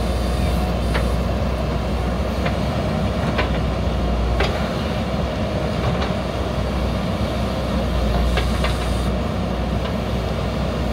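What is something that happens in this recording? Metal parts clank sharply now and then.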